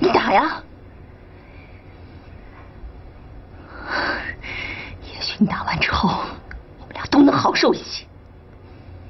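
A woman speaks close by, tense and pleading, her voice rising.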